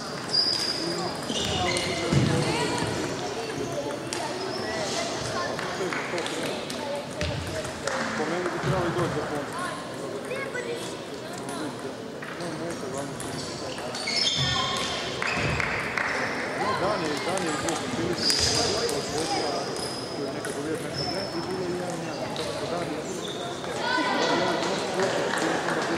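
Table tennis balls click on tables and paddles in a large echoing hall.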